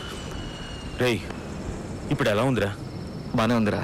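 A man speaks calmly up close.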